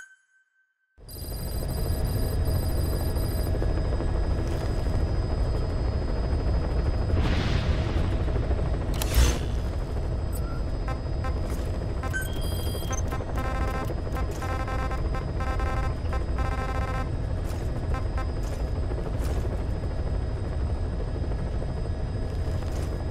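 A helicopter engine rumbles steadily from inside the cabin.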